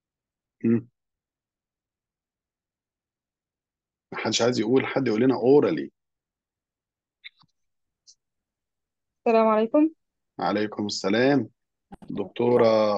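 A man speaks calmly through an online call, explaining.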